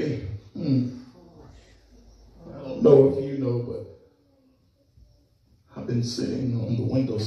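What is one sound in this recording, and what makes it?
A man prays aloud with fervour, pausing between phrases.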